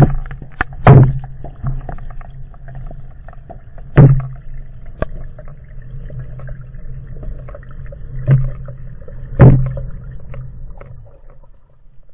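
Air bubbles gurgle and rush past underwater.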